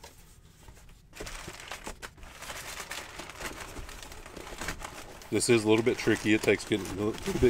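A cardboard box scrapes and rustles as it is handled.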